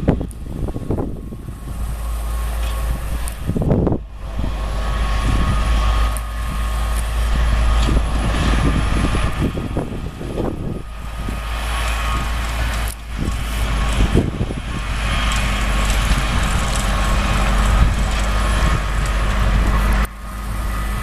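A tractor engine rumbles steadily close by.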